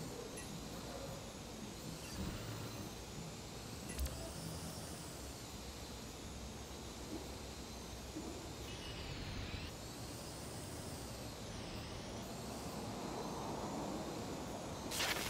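A small drone whirs steadily, its pitch rising and falling as it flies.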